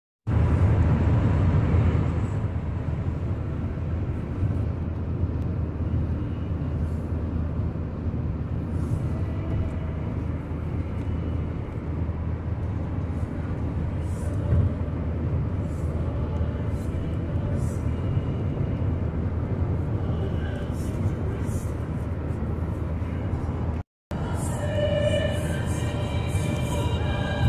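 Tyres rumble steadily on a highway from inside a moving car.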